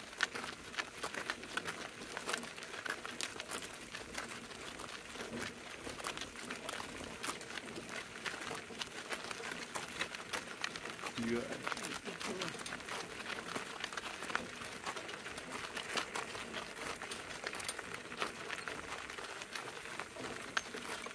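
Hooves clop steadily on a gravel road.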